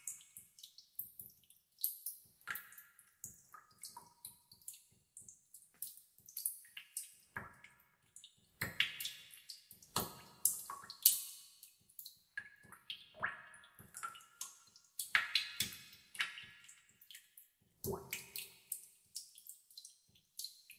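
Water drops fall one after another and plink into still water.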